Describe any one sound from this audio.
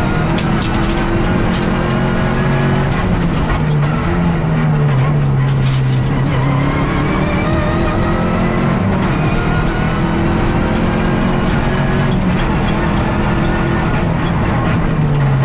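A rally car engine roars loudly, rising and falling as the car accelerates and shifts gears.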